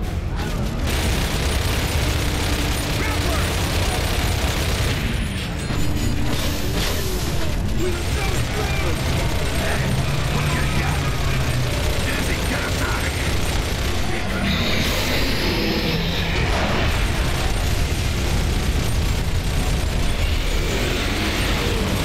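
A large vehicle engine rumbles low and steady.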